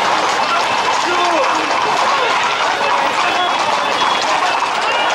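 A crowd of men and women chatters loudly close by, outdoors.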